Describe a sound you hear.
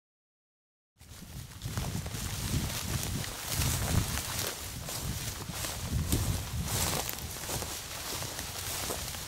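Footsteps swish through tall dry grass.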